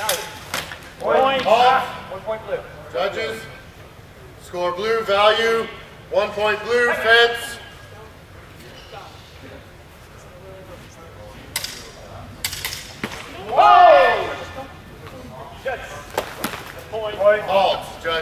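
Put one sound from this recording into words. Men call out in a large echoing hall.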